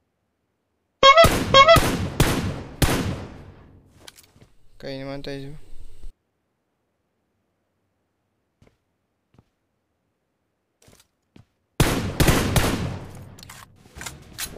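Rifle shots crack loudly and echo away.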